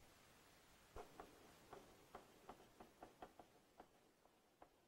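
A pencil scratches and taps on paper, close by.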